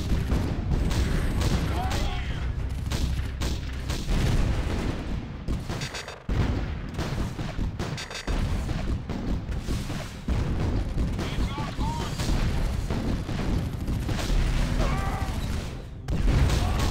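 Gunfire cracks and explosions rumble throughout a battle.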